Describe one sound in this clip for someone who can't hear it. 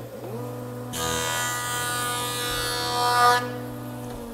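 A jointer cutter planes a board with a loud whine.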